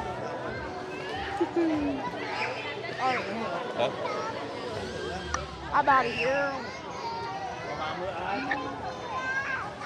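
Water splashes and laps in a pool.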